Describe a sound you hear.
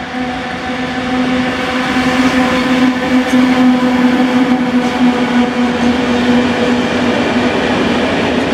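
An electric locomotive hums loudly as it passes close by.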